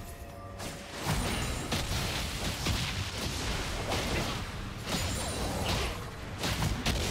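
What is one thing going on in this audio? Game spell effects whoosh and burst in quick bursts.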